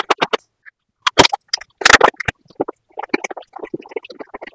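A man bites into something crisp close to a microphone.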